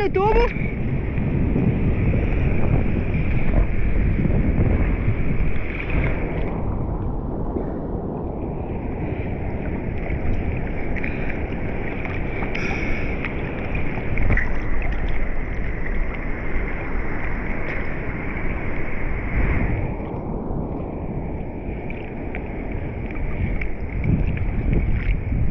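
Water laps and splashes against a board close by, outdoors in light wind.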